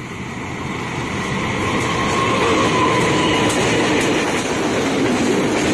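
A train's wheels clatter over the rails.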